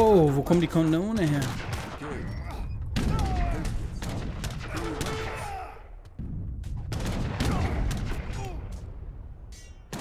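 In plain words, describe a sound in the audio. Cannons fire and shells explode with heavy booms.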